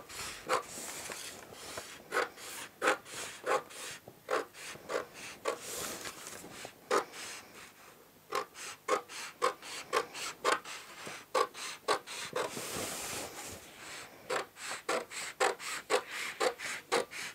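Scissors snip through stiff paper in quick repeated cuts.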